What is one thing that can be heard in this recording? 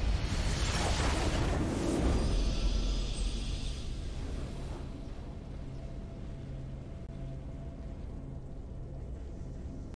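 A triumphant music swell plays as a victory fanfare.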